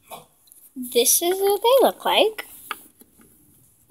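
A small plastic toy is set down on a wooden table with a light knock.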